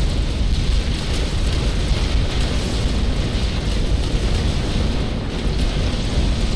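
Laser weapons zap and fire rapidly.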